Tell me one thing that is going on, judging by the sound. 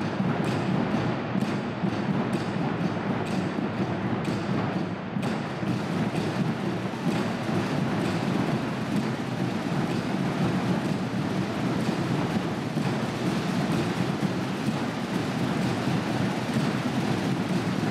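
A marching band of drums and brass plays loudly in a large echoing hall.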